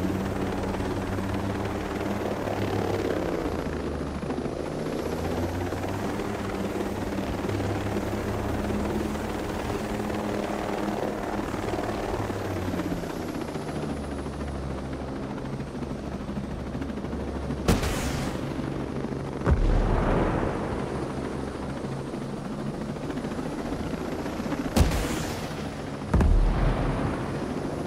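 A helicopter's rotor throbs steadily overhead.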